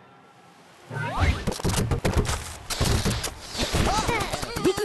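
Game sounds of birds squawking and blocks crashing play loudly.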